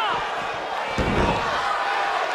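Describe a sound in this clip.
A heavy body thuds onto a hard floor.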